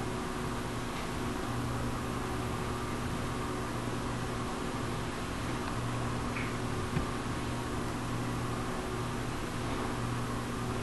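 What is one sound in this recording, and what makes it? A small parrot chirps softly now and then.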